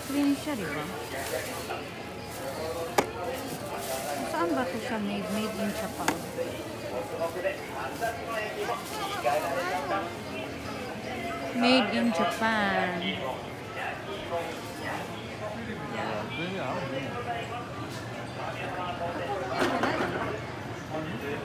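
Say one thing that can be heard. Men and women chatter in the background of a busy indoor crowd.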